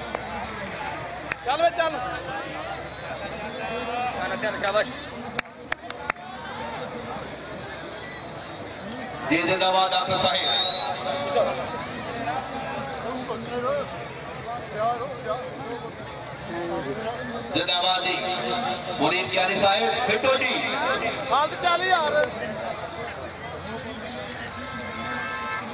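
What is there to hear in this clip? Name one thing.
A crowd of men murmurs and shouts outdoors.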